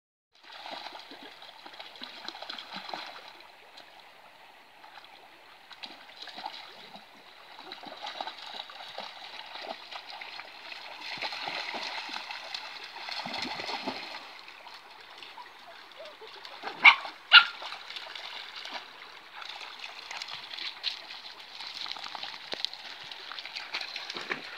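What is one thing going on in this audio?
Dogs splash and wade through shallow water.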